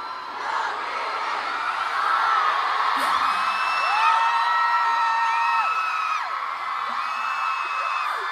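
A young woman sings with sustained, gliding notes through loudspeakers in a large hall.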